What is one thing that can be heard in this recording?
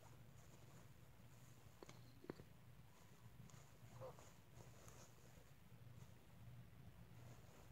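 A young man breathes softly close by.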